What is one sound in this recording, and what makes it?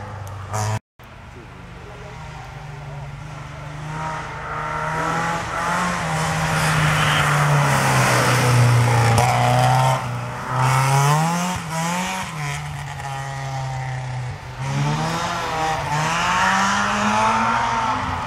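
A car engine roars closer and revs hard, rising and falling in pitch.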